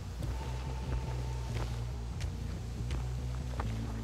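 Footsteps crunch through dry corn stalks.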